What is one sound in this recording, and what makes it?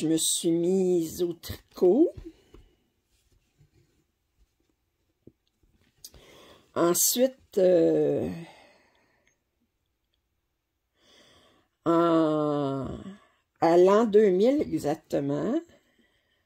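Thread rustles softly as it is pulled through stiff fabric.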